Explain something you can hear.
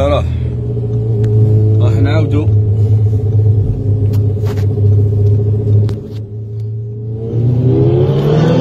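A motorcycle engine revs, rising and falling in pitch.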